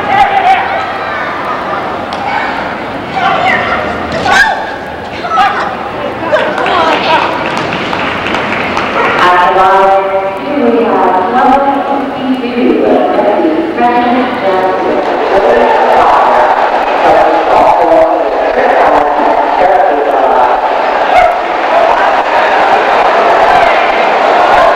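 A crowd chatters and murmurs in a large echoing hall.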